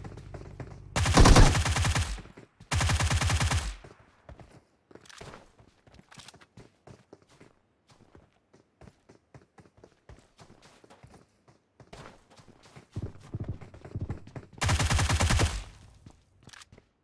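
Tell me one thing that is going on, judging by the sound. A gun fires in loud rapid bursts.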